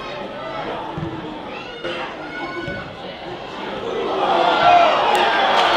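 A football is kicked.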